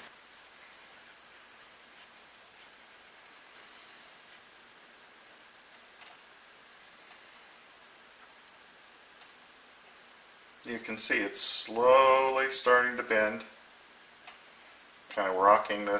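A small hand tool clicks faintly against a thin strip of wood.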